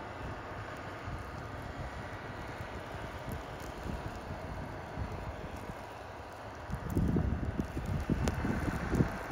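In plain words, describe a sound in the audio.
A small engine runs steadily at a distance.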